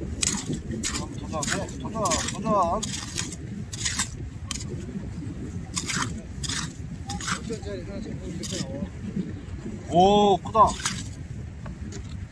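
A hand hoe scrapes and chops into wet mud.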